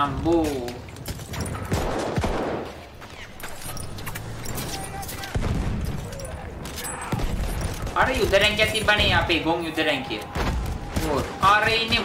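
Gunshots crack sharply.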